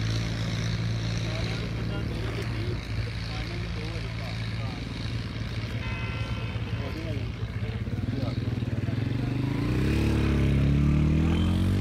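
Several men talk in the distance outdoors.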